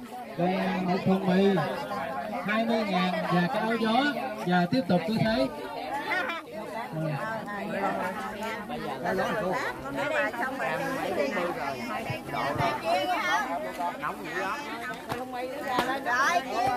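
A crowd of adults and children chatters all around, close by.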